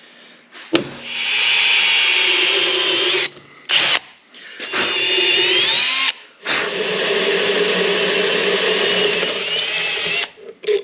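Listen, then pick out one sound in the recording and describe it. A cordless drill whirs in bursts as it bores into metal.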